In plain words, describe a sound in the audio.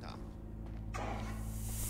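A fire extinguisher sprays with a hiss.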